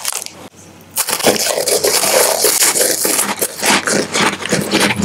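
A man crunches crisp biscuits loudly, close up.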